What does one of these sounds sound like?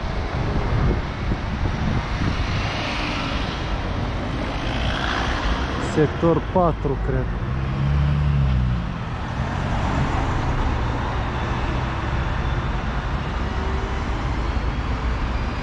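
Traffic rumbles past on a busy street.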